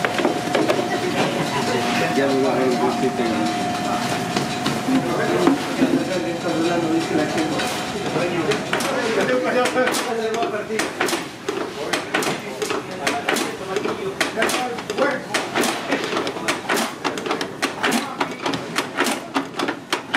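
Hands shuffle dough balls in coarse meal with soft rustling and patting.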